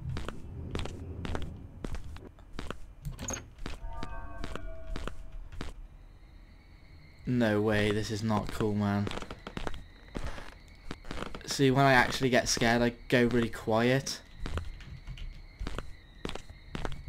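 Footsteps creak and thud on wooden floorboards.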